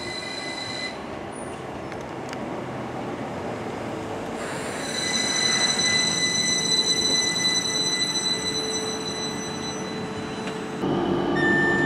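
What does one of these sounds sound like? An electric train pulls into a station and slows with a rumble.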